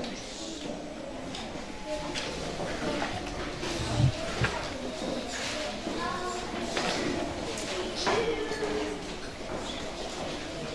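A girl plays an electronic keyboard indoors.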